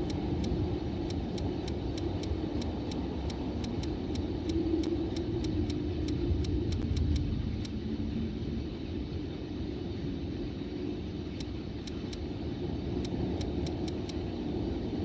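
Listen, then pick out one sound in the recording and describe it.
Short soft clicks tick in quick succession as a menu cursor moves.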